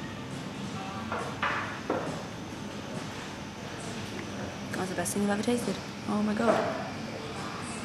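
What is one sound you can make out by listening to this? A young woman sips from a mug.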